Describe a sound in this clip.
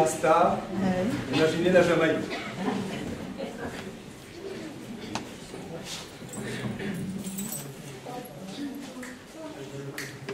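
A mixed choir sings together in a reverberant hall.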